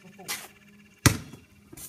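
A basketball bangs against a hoop's backboard.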